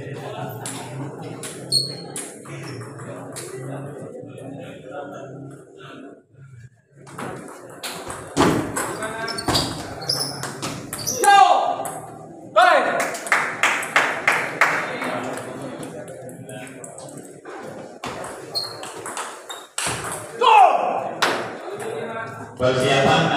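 A ping-pong ball clicks back and forth off paddles and a table in a quick rally.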